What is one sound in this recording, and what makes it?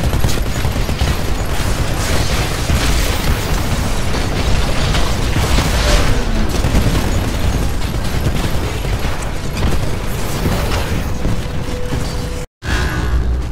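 A heavy cannon fires rapid, booming bursts.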